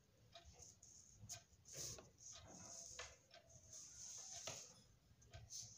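A sheet of paper rustles and crinkles close by.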